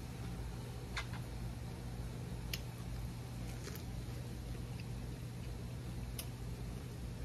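A spoon clicks against a bowl.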